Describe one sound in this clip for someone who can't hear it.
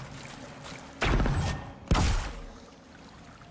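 A magic blast bursts with a loud whoosh.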